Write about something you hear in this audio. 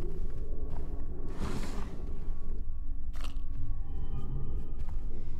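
Footsteps shuffle slowly on a hard floor.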